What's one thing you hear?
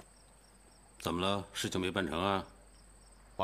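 An older man speaks in a questioning tone.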